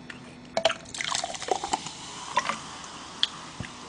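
A drink pours fizzing into a glass.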